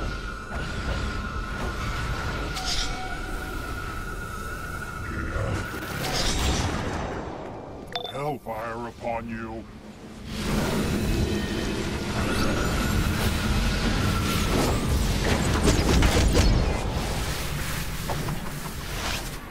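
Magic spells crackle and whoosh during a game battle.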